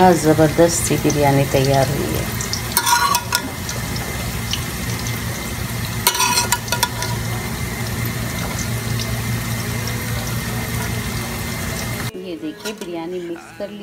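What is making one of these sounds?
A metal spoon scrapes against a pot while stirring rice.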